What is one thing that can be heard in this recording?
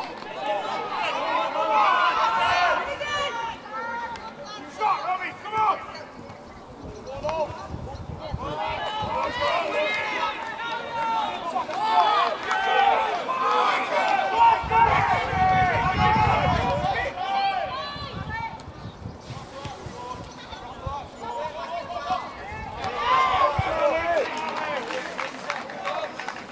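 Young female players shout to one another across an open field.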